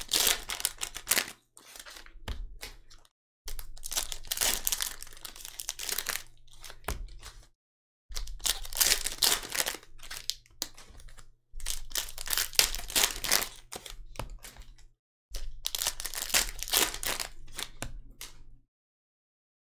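Foil wrappers crinkle and tear as packs are ripped open.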